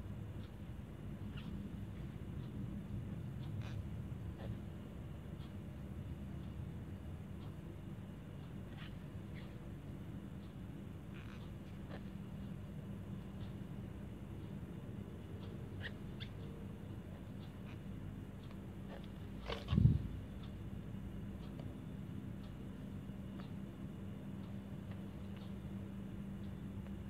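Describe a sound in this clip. A crochet hook clicks softly against yarn.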